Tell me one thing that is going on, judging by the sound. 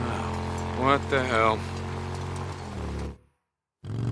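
A motorcycle engine rumbles steadily.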